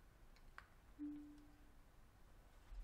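A television gives a short, low beep.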